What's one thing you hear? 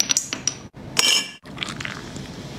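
Ice cubes clink in a glass.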